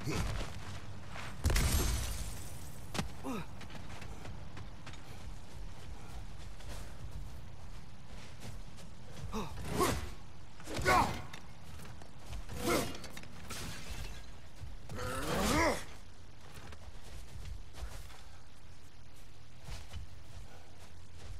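Heavy footsteps crunch on snow.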